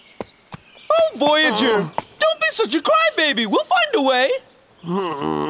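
A man speaks with animation in a gruff voice.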